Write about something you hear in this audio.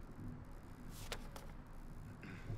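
Paper rustles as a page is turned.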